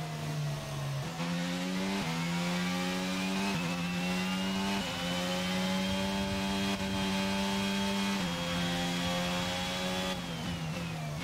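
A racing car engine roars loudly, its pitch jumping up with each gear change.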